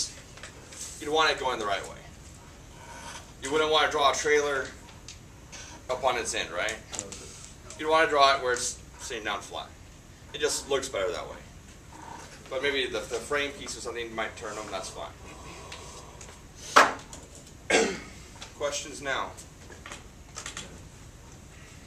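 A man speaks calmly, explaining at length.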